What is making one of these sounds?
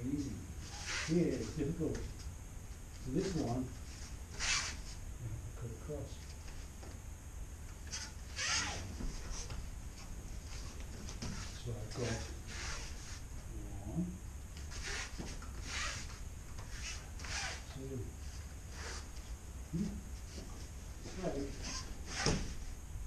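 Bare feet shuffle and slide across a mat.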